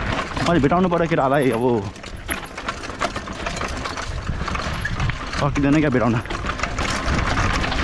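Bicycle tyres crunch and skid over loose dirt and stones.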